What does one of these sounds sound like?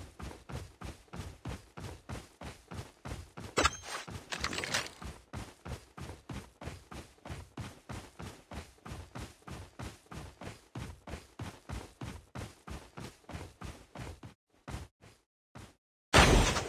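Footsteps run quickly and steadily over grass.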